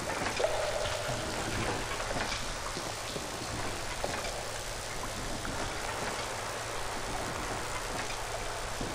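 Electricity crackles and buzzes steadily from a machine.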